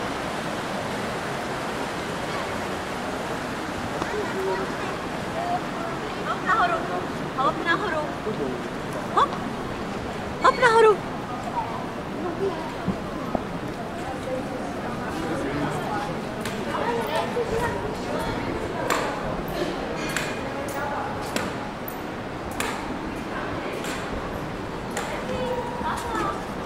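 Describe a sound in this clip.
Men and women chat at a distance outdoors.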